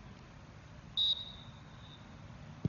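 A referee's whistle blows once, short and shrill.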